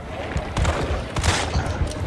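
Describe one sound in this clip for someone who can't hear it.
A pistol fires a single loud shot.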